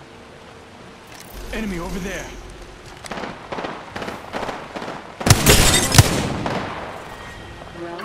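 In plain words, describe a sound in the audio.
A rifle fires a few shots.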